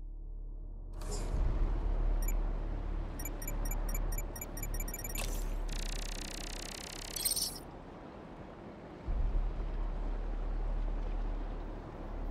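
Wind rushes steadily over open water.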